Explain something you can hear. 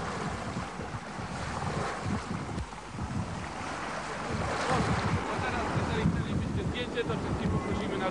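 Rough sea water rushes and splashes against a boat in the wind.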